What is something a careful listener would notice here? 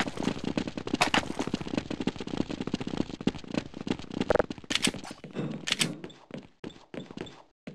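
A game's weapons click and clack as they are swapped and drawn.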